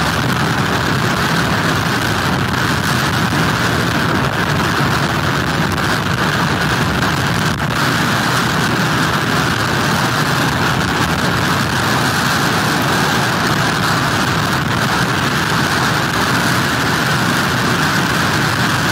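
Heavy surf crashes and churns.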